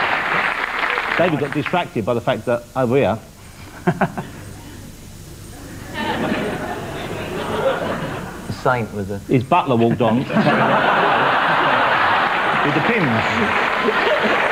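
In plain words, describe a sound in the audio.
A middle-aged man laughs softly close to a microphone.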